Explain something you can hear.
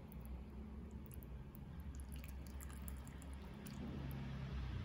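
A ladle clinks softly against a pot.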